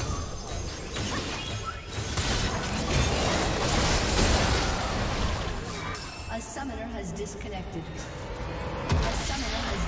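Game spells crackle and burst in a fight.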